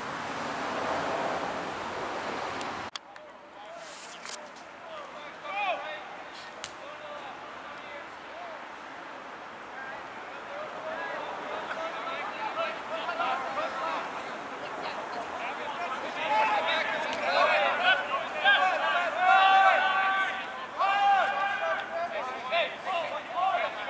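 Several young men shout and call out to each other outdoors.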